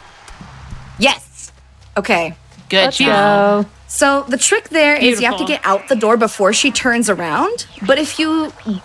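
A young woman talks with animation through a microphone.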